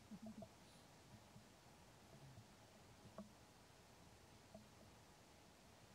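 Fingers rustle softly through a monkey's fur.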